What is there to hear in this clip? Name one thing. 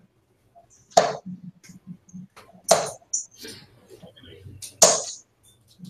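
Darts thud into a bristle dartboard.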